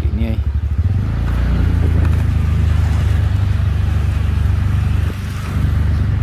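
A motorcycle engine rumbles as it passes close by.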